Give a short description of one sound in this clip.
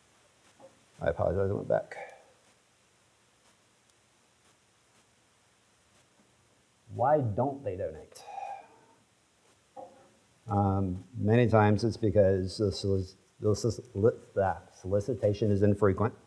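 A middle-aged man speaks calmly into a microphone in a quiet room.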